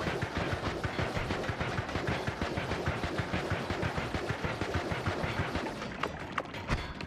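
Rapid laser shots fire in a fast rattling burst.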